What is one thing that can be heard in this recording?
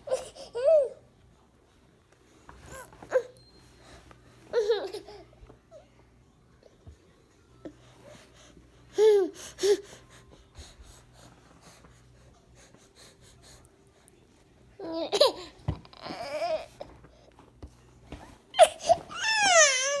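A baby giggles and squeals close by.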